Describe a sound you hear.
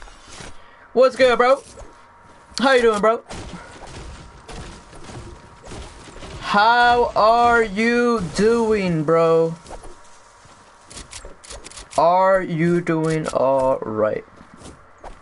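A young man sings loudly and close into a microphone.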